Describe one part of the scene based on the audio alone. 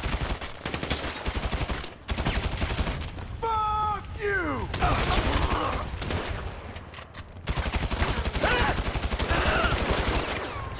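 A rifle fires rapid bursts of automatic gunfire.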